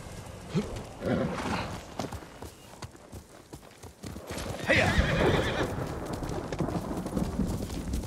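A horse's hooves thud as it gallops over soft ground.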